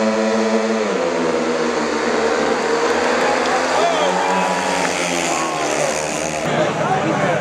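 Motorcycle engines roar as the bikes race away and fade into the distance.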